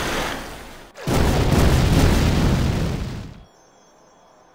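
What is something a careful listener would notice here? A magic fire spell roars and crackles.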